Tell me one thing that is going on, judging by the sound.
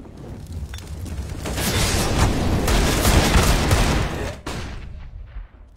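An explosion roars loudly.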